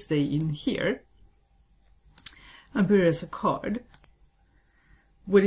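A young woman speaks calmly and close to a microphone, in short phrases.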